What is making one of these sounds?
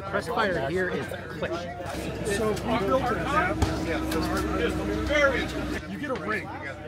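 A man talks cheerfully up close to a microphone.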